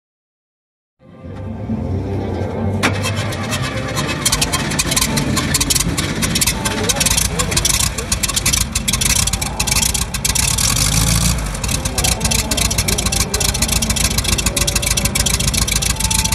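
An old car engine idles loudly close by.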